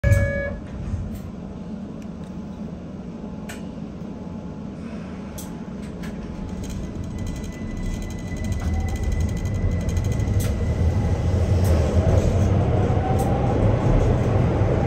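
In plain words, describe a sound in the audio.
A train rumbles along its track through a tunnel, growing louder as it speeds up.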